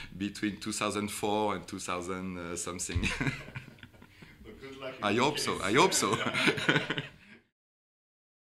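A man speaks calmly and cheerfully close to a microphone.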